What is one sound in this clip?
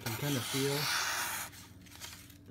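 A knife blade slices through paper.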